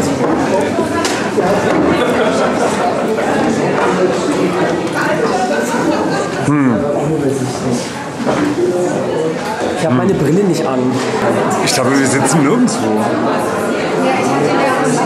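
A crowd chatters nearby in a busy room.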